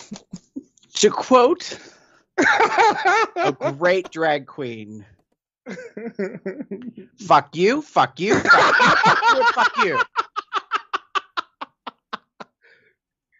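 A man laughs heartily over an online call.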